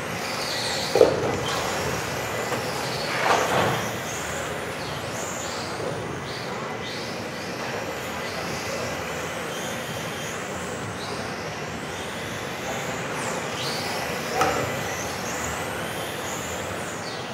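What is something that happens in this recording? Electric radio-controlled touring cars whine around a track in a large echoing hall.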